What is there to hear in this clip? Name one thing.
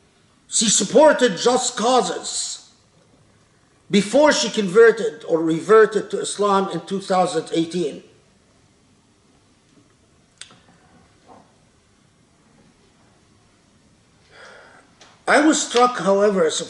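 An elderly man speaks with animation close to a microphone, pausing now and then.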